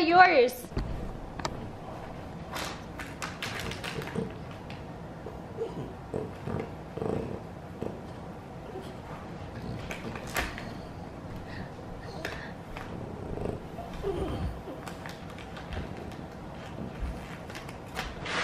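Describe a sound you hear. A small dog sniffs loudly close by.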